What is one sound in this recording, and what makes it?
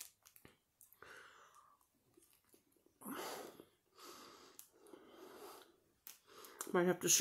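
A woman chews food with her mouth closed.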